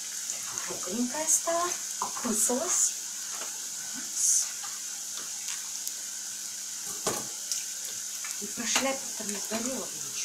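A knife taps and scrapes on a cutting board.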